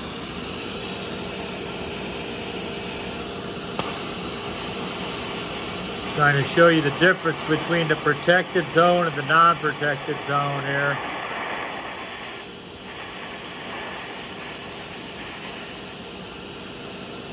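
A gas torch roars steadily.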